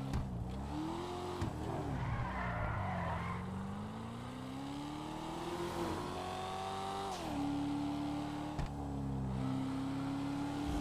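A car engine revs and roars, rising and falling as gears shift.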